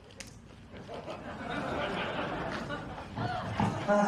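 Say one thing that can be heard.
A crowd cheers and claps.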